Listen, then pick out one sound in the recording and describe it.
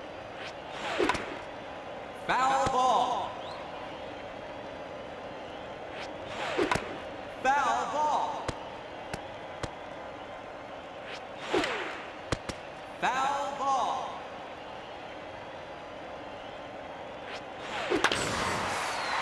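A video game bat cracks against a ball.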